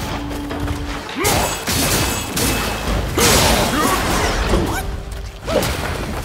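A huge beast growls and snarls.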